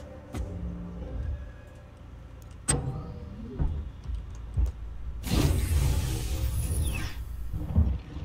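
A heavy metal hatch slides open with a hiss.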